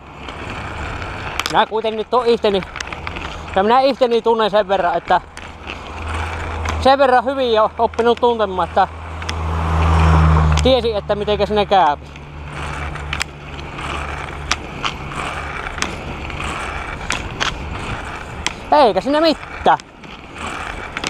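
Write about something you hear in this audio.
A bicycle rattles and clicks over bumps in the path.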